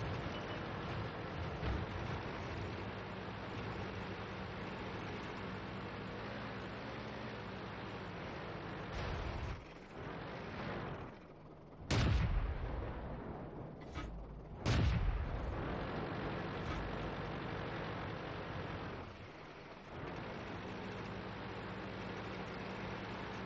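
A tank engine rumbles.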